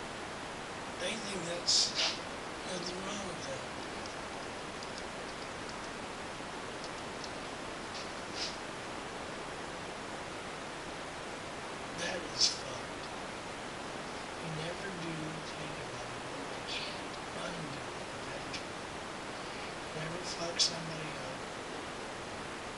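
A man speaks quietly in short bursts close to the microphone.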